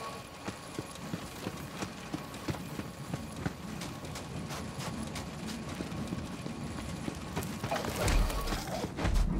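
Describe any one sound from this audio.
Footsteps crunch steadily on hard ground.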